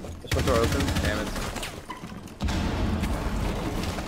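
A wooden barricade splinters and breaks.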